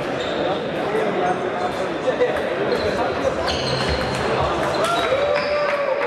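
A table tennis ball clicks back and forth on paddles and table in an echoing hall.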